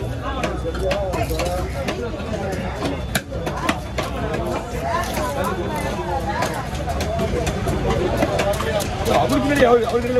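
A heavy cleaver chops through fish onto a wooden block with sharp thuds.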